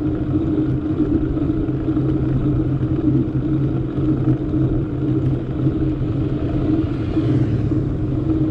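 Wind rushes loudly past, as if outdoors on a moving bicycle.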